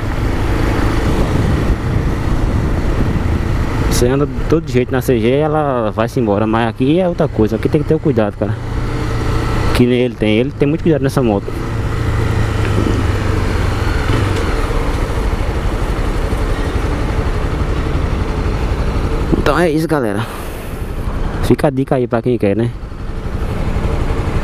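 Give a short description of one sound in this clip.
A motorcycle engine runs as the bike rides through traffic.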